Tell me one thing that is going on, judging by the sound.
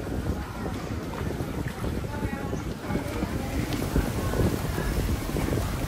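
A swimmer splashes gently through water.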